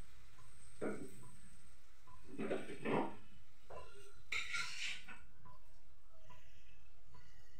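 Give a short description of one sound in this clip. Utensils clink and clatter.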